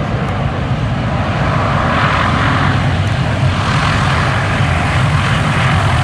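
Several propeller engines of a large aircraft drone loudly and steadily close by.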